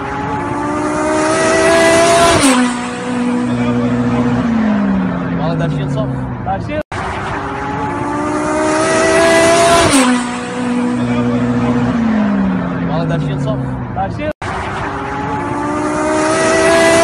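A car engine roars loudly as a car speeds past, its pitch dropping as it goes by.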